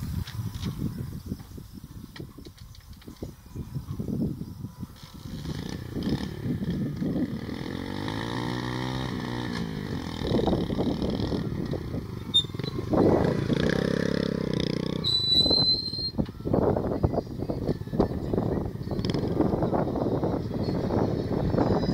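A motorcycle engine idles and revs nearby.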